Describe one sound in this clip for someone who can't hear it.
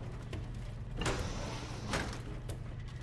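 A heavy metal door slides open with a clunk.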